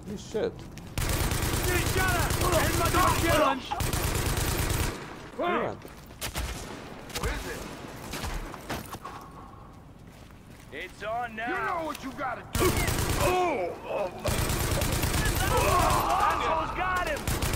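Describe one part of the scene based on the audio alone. An automatic rifle fires in rapid, rattling bursts.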